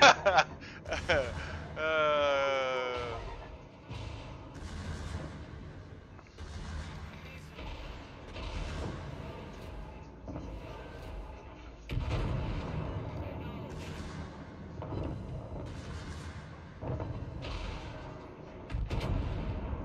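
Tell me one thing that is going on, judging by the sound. Heavy guns fire with deep booms.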